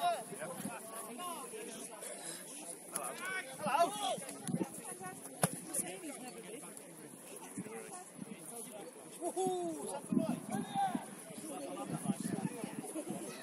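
Men and women on the sideline shout and call out across an open field.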